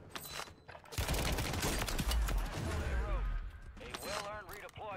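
Gunfire bursts out in a video game.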